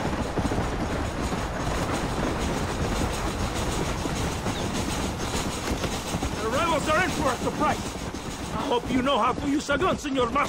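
A steam train rumbles and chugs along the tracks close by.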